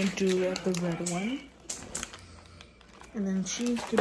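A plastic noodle packet crinkles as it is waved.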